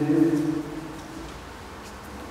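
A man chants a short phrase in a deep voice, echoing in a large hall.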